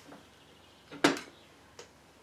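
An aluminium crankcase half knocks and clinks on a metal engine case.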